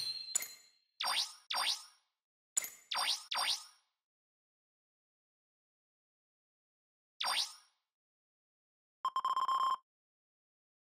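Short electronic blips sound one after another.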